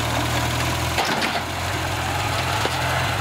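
A metal trailer clanks as a tractor rolls off it.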